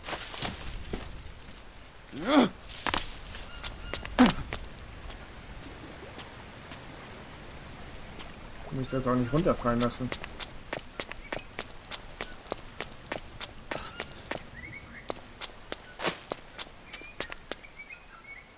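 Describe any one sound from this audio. Footsteps rustle through dense leaves and undergrowth.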